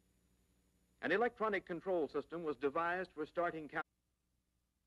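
A man speaks calmly, heard through an old, thin-sounding recording.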